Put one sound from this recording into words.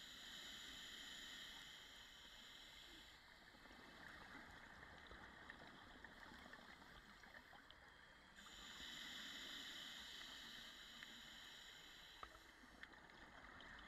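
A diver breathes in through a regulator with a steady hiss, underwater.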